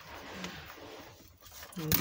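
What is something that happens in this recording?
Scissors snip through a strip of paper.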